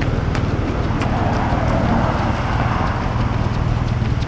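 A car drives past nearby, swelling and fading.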